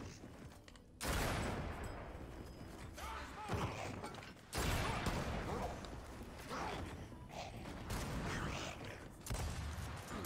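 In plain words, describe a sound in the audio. Heavy gunfire roars in loud bursts.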